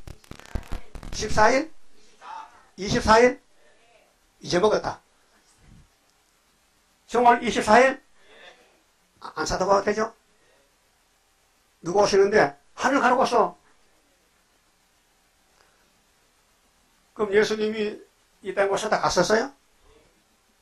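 An elderly man preaches forcefully through a microphone in short bursts with pauses.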